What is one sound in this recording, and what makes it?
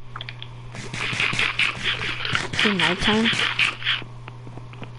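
A character munches food with quick crunchy bites.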